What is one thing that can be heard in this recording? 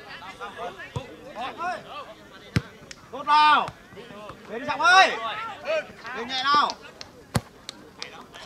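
A football is kicked with sharp thumps.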